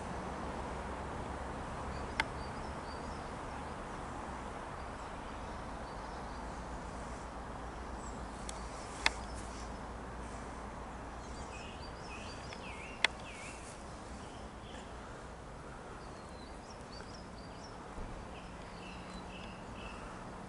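A jet airliner high overhead rumbles distantly as it descends.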